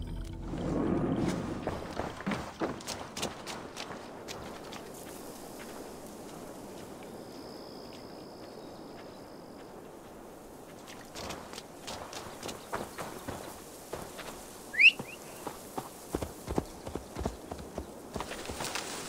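Footsteps crunch quickly on a dirt path.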